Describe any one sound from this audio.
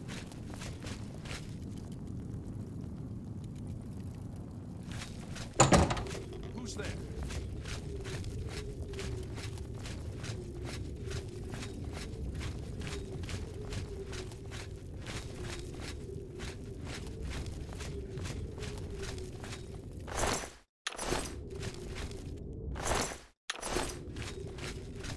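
Footsteps thud steadily on stone and dirt.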